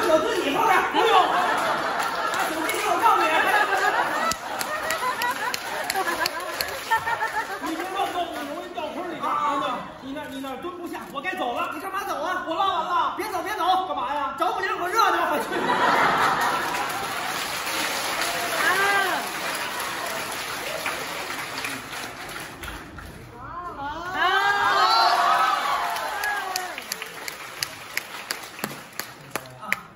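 A man talks with animation through a microphone in a large echoing hall.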